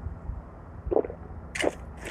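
A short gulp of a drink sounds.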